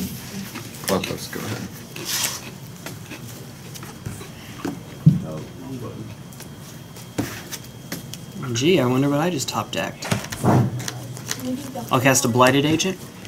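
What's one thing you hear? Playing cards are set down and slide softly on a table.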